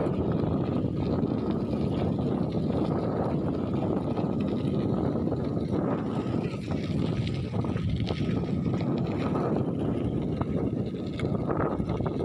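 Wind rumbles loudly against the microphone throughout.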